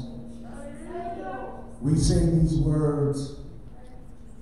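An elderly man preaches with fervour into a microphone over loudspeakers, his voice echoing in a large hall.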